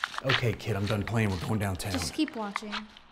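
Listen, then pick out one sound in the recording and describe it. A middle-aged man speaks in a low, firm voice close by.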